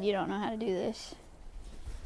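A young woman talks quietly close to a microphone.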